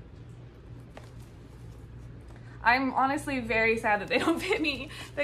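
Rubber gloves rustle.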